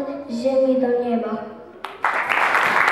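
A group of children sings together through loudspeakers.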